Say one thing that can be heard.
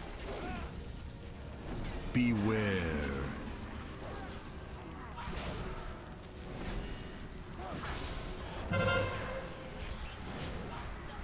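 Magic spells whoosh and chime during a battle.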